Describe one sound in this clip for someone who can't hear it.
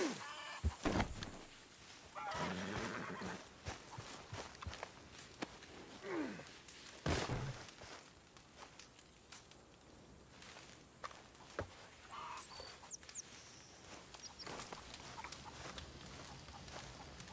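Footsteps tread through grass.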